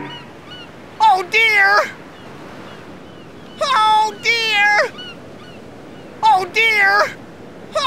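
A man sings loudly in short, drawn-out phrases.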